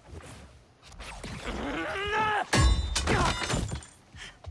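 A young man cries out in pain.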